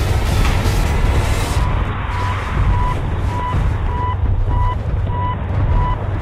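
Wind roars and buffets steadily past a parachutist.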